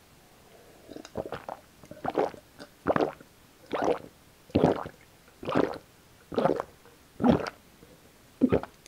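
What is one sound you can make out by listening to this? A man gulps down a drink in loud, regular swallows close to the microphone.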